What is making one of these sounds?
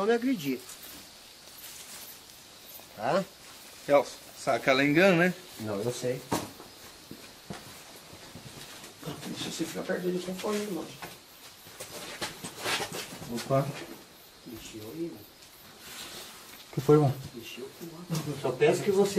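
Men talk nearby in short, animated bursts.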